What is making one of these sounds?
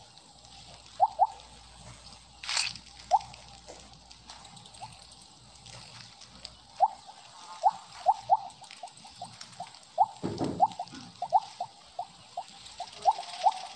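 Short high blips ring out quickly, one after another, as a game snake eats.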